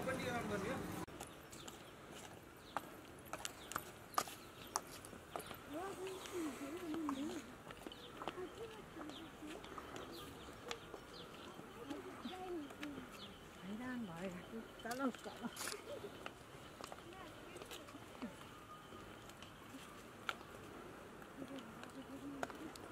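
Footsteps crunch on a gritty path outdoors.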